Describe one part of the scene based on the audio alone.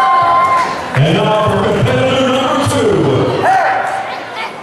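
A man announces through a microphone over loudspeakers in a large echoing hall.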